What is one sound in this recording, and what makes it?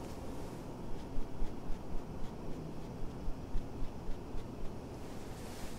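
Fingertips pat lightly and quickly on skin.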